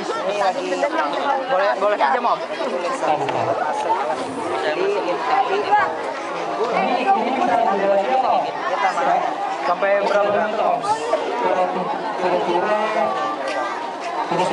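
A teenage boy speaks into a handheld microphone.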